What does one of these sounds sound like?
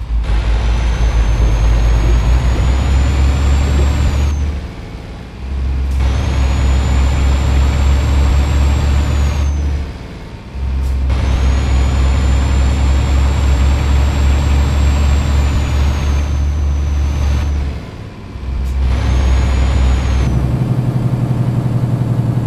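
A heavy truck engine roars steadily, dipping briefly at each gear change.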